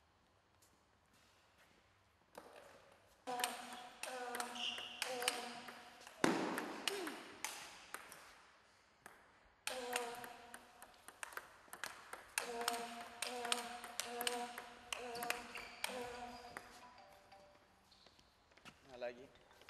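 A table tennis ball clicks against paddles and the table.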